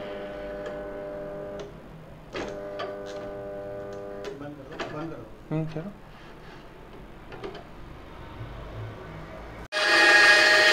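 A band saw motor runs with a steady whine.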